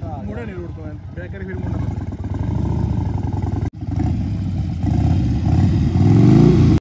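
A motorcycle engine hums as it approaches.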